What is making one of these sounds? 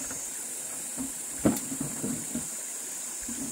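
A shovel scrapes and dumps loose soil.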